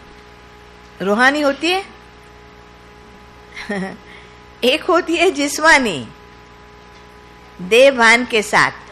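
An elderly woman speaks calmly into a microphone, with pauses between phrases.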